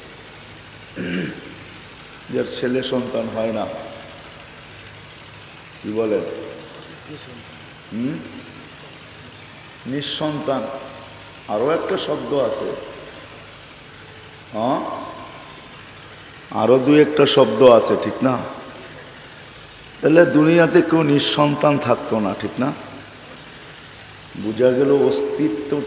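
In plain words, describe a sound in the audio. An elderly man preaches with animation into a microphone, heard through loudspeakers.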